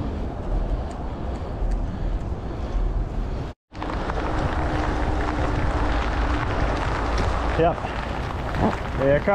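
Wind rushes and rumbles loudly outdoors.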